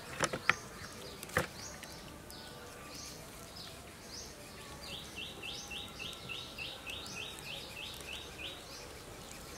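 Roasted chicken skin crackles and tears as hands pull it apart.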